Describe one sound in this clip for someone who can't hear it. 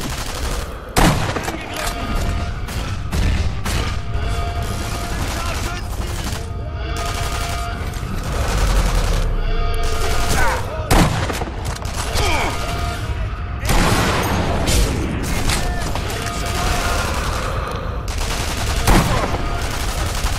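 Rifle shots ring out sharply, echoing, several times.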